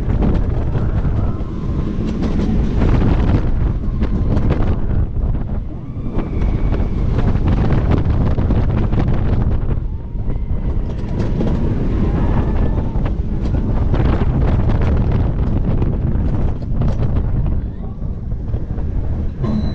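Wind roars loudly past on a fast ride.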